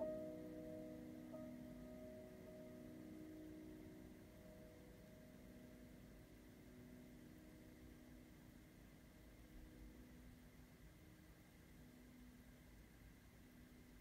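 A piano plays slow, soft chords that ring and fade.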